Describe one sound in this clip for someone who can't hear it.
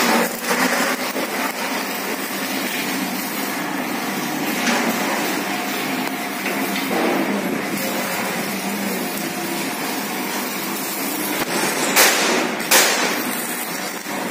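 An electric welding arc crackles and sizzles close by.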